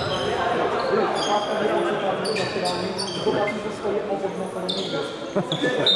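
Players shout and call out to each other in a large echoing hall.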